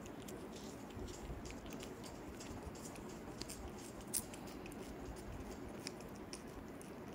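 A cat licks and laps wetly at close range.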